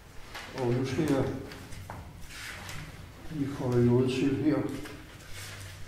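An elderly man reads aloud calmly, close by.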